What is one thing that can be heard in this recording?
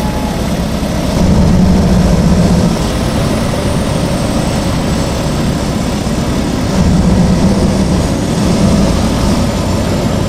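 A truck engine rumbles steadily, swelling louder now and then.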